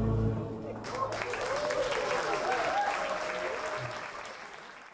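An audience cheers and whoops.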